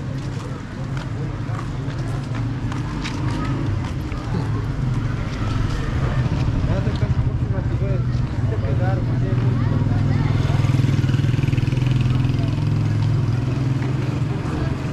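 Footsteps patter on a paved street.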